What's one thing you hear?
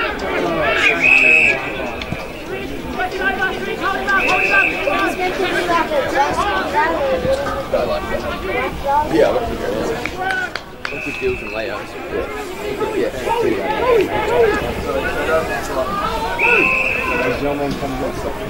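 An umpire blows short sharp whistle blasts outdoors.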